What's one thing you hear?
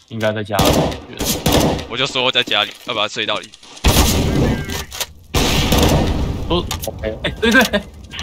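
A rifle fires in short, loud bursts.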